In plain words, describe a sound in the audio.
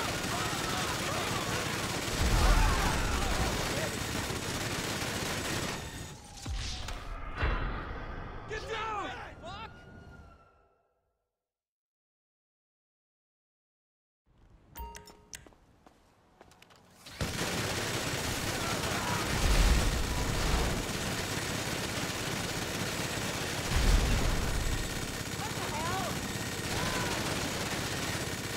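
A minigun fires in a rapid, steady roar.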